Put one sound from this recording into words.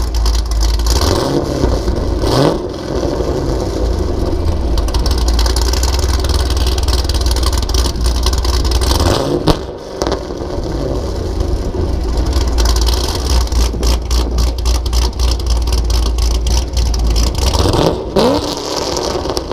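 A car engine revs sharply several times with a loud exhaust roar.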